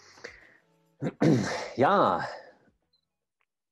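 A man sighs heavily.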